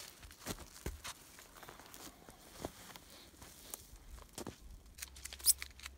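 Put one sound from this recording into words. Boots crunch on snowy ground.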